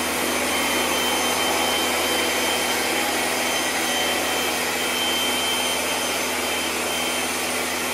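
A pressure washer sprays water in a steady hiss against a wall.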